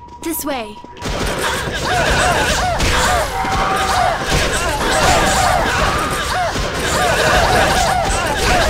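Magic spells crackle and clash in a busy fantasy battle.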